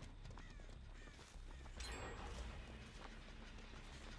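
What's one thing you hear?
Dry stalks rustle and swish as someone pushes through them.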